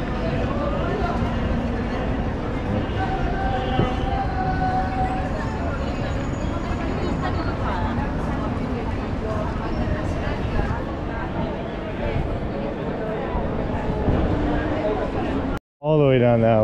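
A crowd of people chatters and walks by outdoors.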